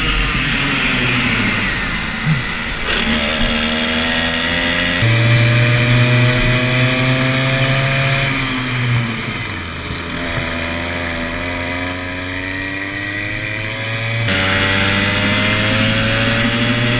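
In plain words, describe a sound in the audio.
A kart engine buzzes loudly up close, revving up and down.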